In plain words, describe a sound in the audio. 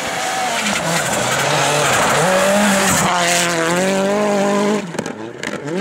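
Tyres hiss and spray snow as a rally car slides past.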